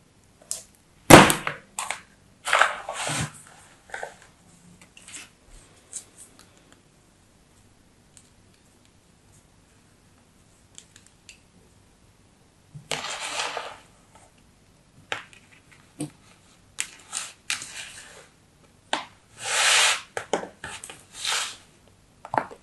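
A knife scrapes and cuts through soft sand.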